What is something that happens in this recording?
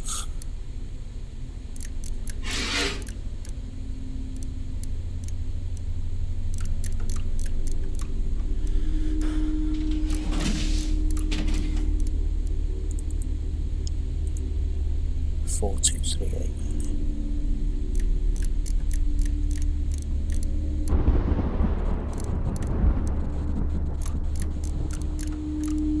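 Metal lock dials click as they turn.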